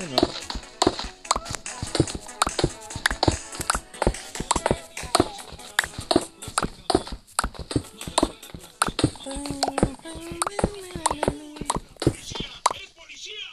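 A pickaxe chips rapidly at stone, with quick sharp knocks.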